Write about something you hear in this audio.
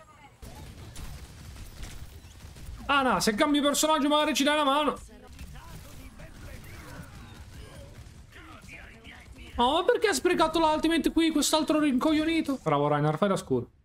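Rapid gunfire blasts from a video game.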